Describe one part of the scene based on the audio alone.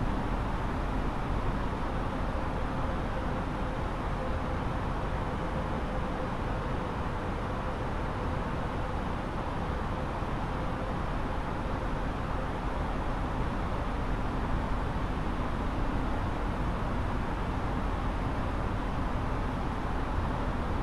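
A jet aircraft's engines hum with a steady, even roar.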